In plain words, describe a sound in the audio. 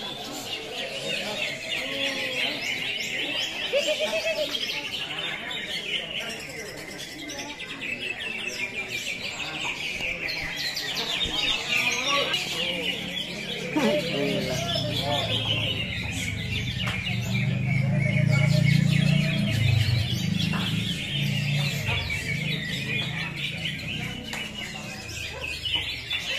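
Many caged birds chirp and twitter busily all around.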